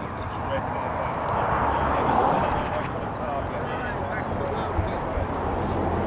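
Two men talk at a distance outdoors.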